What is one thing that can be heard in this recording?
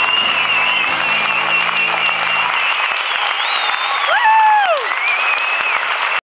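A group of young girls sing and cheer loudly.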